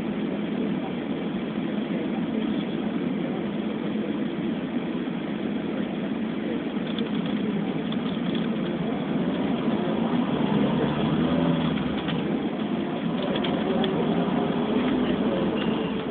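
A car engine hums from inside a moving vehicle.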